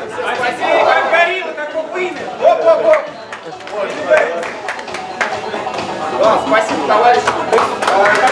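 Several men and women talk and laugh together in a room with some echo.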